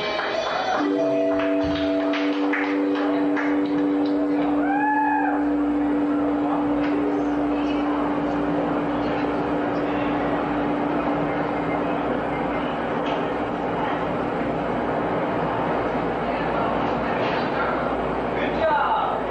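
A live rock band plays loudly.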